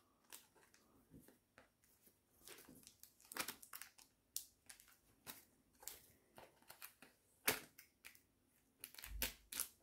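Scissors snip through cardboard and tape.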